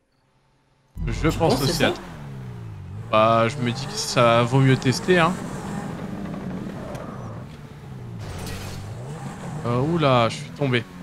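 A sports car engine roars and revs up and down.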